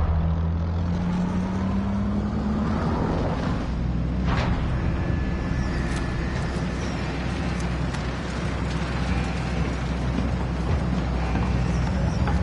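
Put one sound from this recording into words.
Loud dance music with a heavy thumping bass plays.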